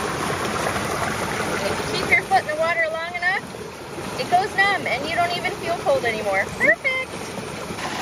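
Boots splash through shallow water.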